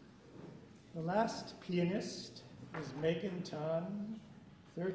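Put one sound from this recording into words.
An elderly man speaks calmly to a small audience in a room.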